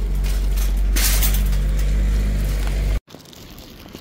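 A shopping cart rattles loudly over pavement.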